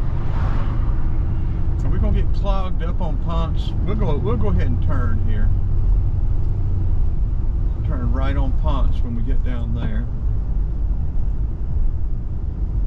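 A car engine hums with a steady low road rumble from inside the car.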